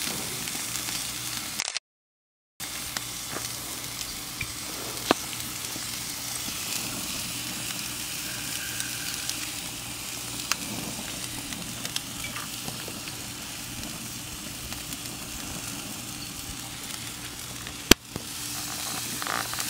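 Meat sizzles and crackles steadily on a hot grill.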